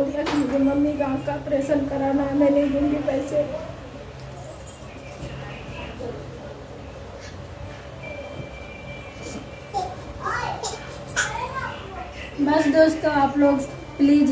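A woman wails and sobs close by.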